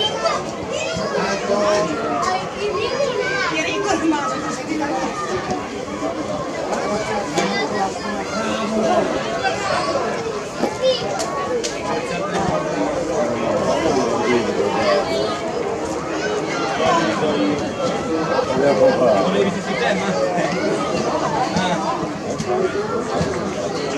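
A crowd of spectators chatters and calls out nearby.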